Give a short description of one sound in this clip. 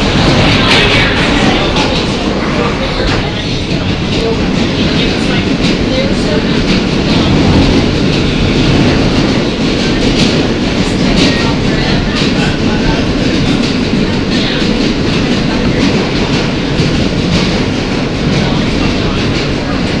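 Metal screeches and clanks as the train car sways.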